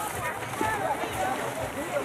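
Water splashes loudly as a swimmer dives in.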